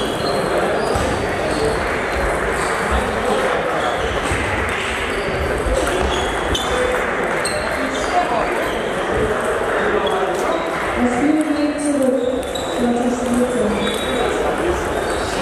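Table tennis balls click back and forth on a table and bats.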